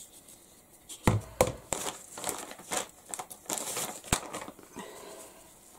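Aluminium foil crinkles and rustles loudly under hands.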